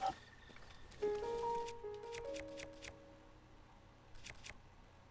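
Soft electronic chimes play in quick steps.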